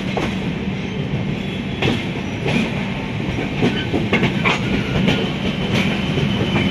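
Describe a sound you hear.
A train rolls slowly with a steady low rumble.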